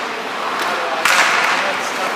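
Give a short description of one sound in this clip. A hockey stick slaps a puck sharply.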